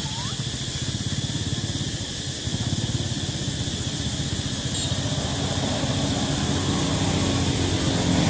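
Dry leaves rustle as a plastic bottle is dragged over them.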